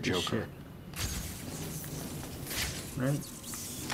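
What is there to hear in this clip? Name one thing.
A gadget fires an electric charge with a sharp zap.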